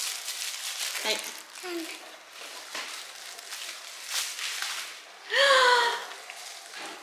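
A young boy speaks softly and exclaims nearby.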